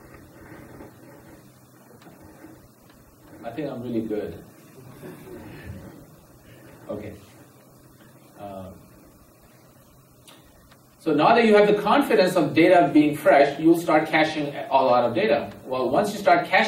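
A man speaks calmly through a microphone, becoming much louder partway through.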